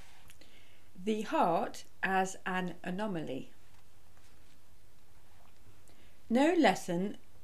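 A middle-aged woman speaks calmly and close into a microphone, in short phrases.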